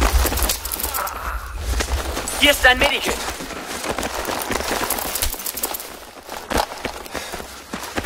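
Debris and dirt patter down on the ground.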